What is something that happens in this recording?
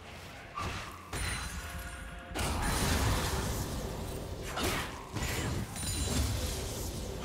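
Game spell effects and weapon hits burst out in quick succession.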